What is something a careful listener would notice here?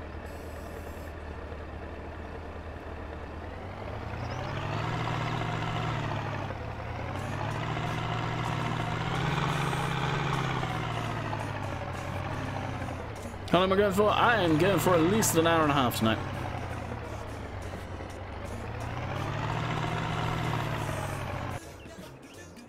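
A loader's engine rumbles and repeatedly revs up and down.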